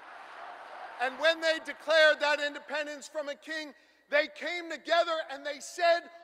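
A middle-aged man speaks forcefully into a microphone over loudspeakers.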